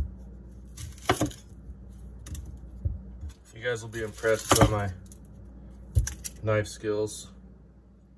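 A knife chops through an onion and taps a wooden board.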